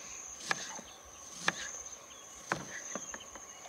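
A knife taps against a cutting board.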